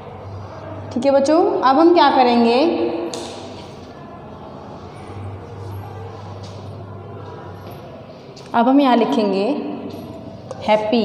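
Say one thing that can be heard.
A woman sings nearby.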